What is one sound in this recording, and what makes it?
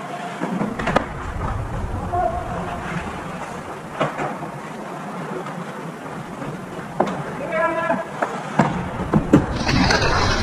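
Hockey sticks crack against a puck in an echoing rink.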